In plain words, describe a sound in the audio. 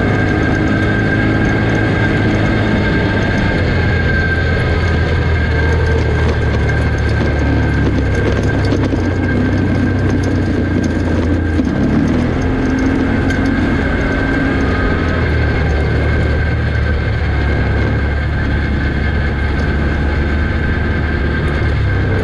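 An off-road vehicle engine drones steadily up close.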